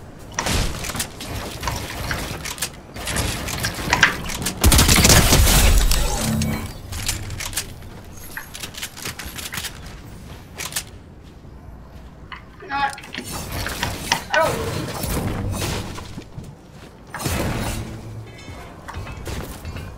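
Building pieces clatter and snap into place.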